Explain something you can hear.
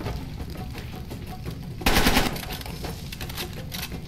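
A rifle is reloaded with metal clicks.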